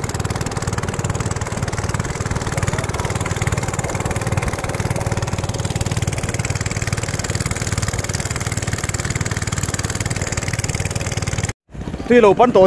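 A boat's motor drones steadily close by.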